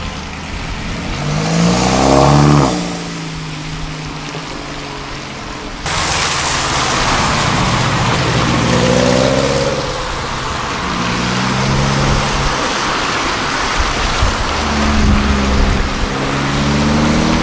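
Car engines rev loudly as cars accelerate past.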